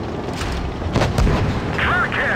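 A tank cannon fires with a loud boom that rolls away.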